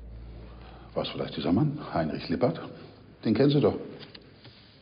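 An elderly man speaks firmly, close by.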